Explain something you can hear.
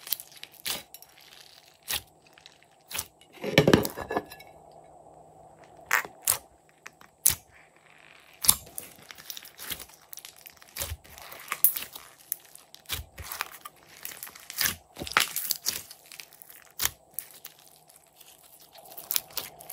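Slime squishes and pops wetly under pressing fingers.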